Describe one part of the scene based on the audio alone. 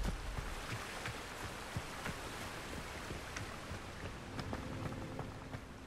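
Running footsteps patter on stone.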